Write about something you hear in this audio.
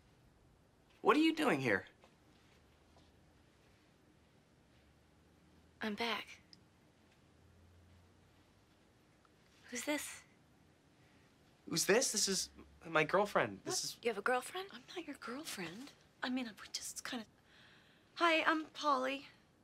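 A woman speaks in surprise, close by.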